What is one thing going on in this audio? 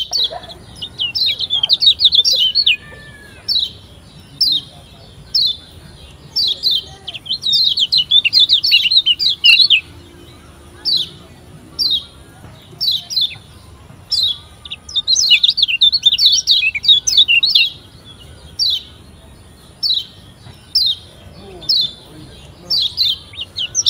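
A small bird chirps in quick, high bursts.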